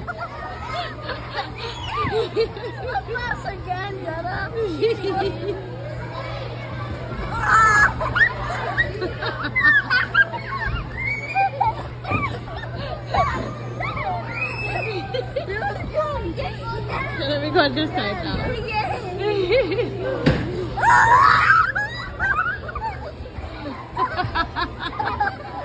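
Young boys laugh and shout playfully close by.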